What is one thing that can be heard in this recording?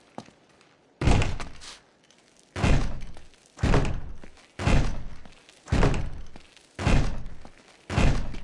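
A man pounds heavily on a large wooden door, blow after blow, booming and echoing.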